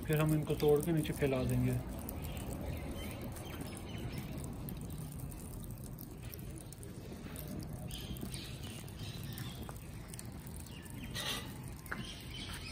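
Burning charcoal crackles and pops softly.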